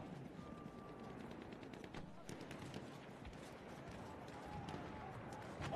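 Gunshots crack in the distance, over and over.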